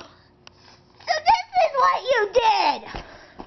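A child talks excitedly, very close by.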